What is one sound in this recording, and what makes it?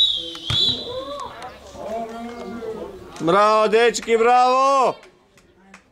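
Young boys shout loudly outdoors across an open field.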